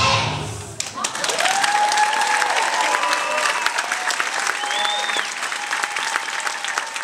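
A large group of young children sings together loudly in a hall.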